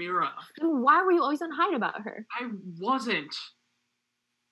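A young woman talks calmly through an online call.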